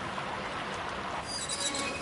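A metal valve wheel creaks as it is turned.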